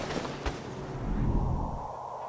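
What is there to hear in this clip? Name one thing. A heavy metal door opens with a low rumble.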